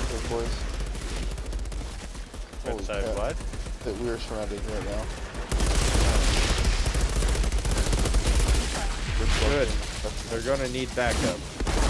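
Rapid gunfire bursts and crackles.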